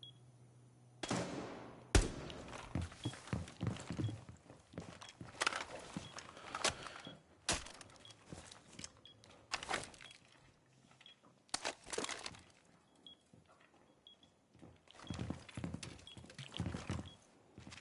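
Footsteps thud and creak on a wooden floor.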